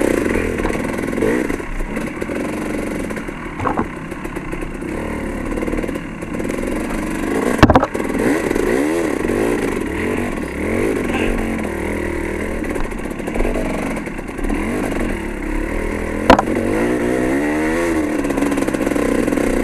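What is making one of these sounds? A dirt bike engine revs and drones up close, rising and falling in pitch.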